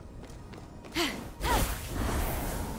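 A sharp whoosh sounds.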